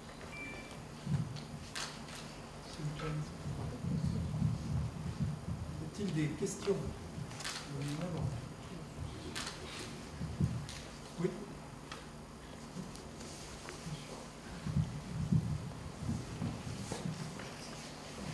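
A man speaks quietly from further off.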